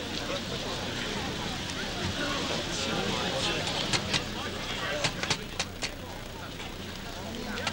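A crowd of men murmurs and chatters nearby outdoors.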